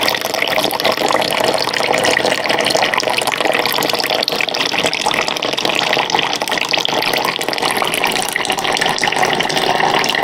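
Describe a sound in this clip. Water pours in a thin stream into a jug.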